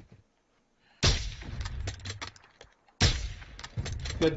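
Gunshots crack sharply.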